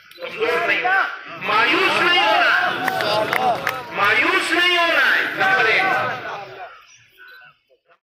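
An elderly man speaks forcefully through a loudspeaker, echoing outdoors.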